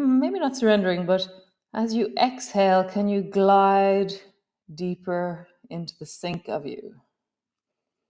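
A woman speaks calmly and softly into a close microphone.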